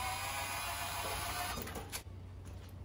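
An impact wrench whirs loudly.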